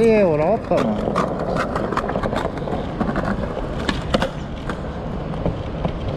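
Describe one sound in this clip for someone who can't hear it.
Skateboard wheels clack over joints in the pavement.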